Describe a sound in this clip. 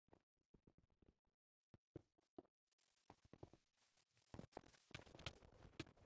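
Blocks thud softly as they are placed.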